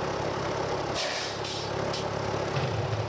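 Steam hisses out in sharp bursts.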